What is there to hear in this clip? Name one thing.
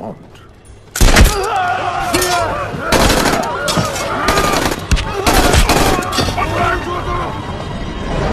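A crowd of men and women screams and shouts in panic.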